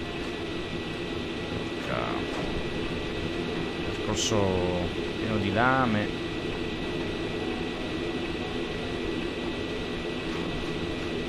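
Spinning saw blades whir steadily.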